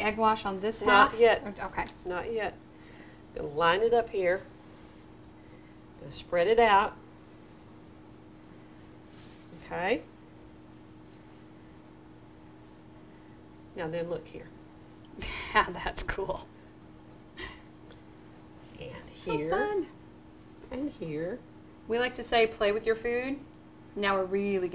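A middle-aged woman talks calmly nearby, explaining.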